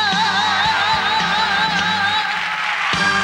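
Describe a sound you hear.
A woman sings into a microphone with a held, wavering voice.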